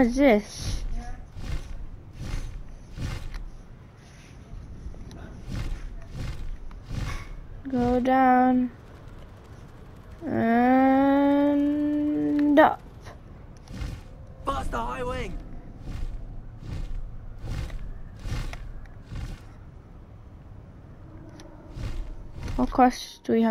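Large wings flap in steady, heavy beats.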